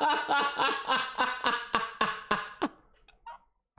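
A man laughs loudly and heartily into a close microphone.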